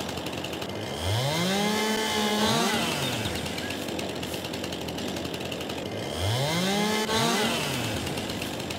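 A chainsaw engine revs up high and winds back down.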